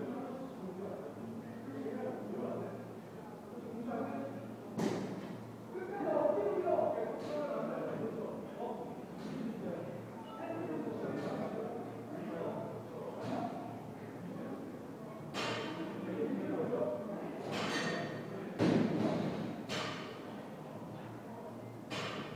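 Several men and women talk and chatter in a large echoing room.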